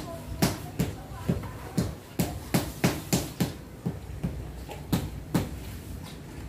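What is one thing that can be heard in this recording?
A rubber mallet taps on floor tiles in a steady rhythm.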